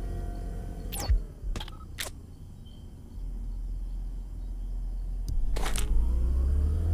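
Short electronic clicks sound as a menu opens and closes.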